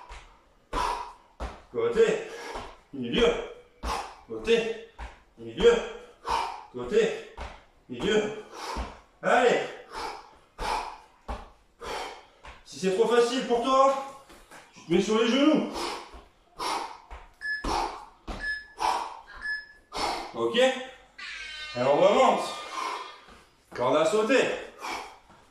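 A young man talks steadily and with energy, close by.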